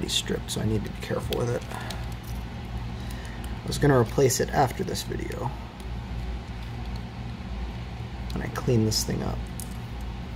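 Plastic parts click and rattle as a small case is pulled apart.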